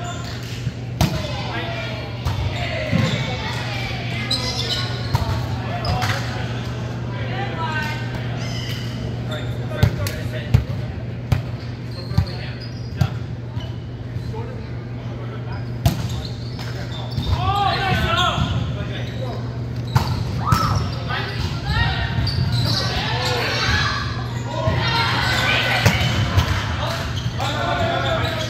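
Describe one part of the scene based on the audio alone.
A volleyball is struck with sharp slaps that echo around a large hall.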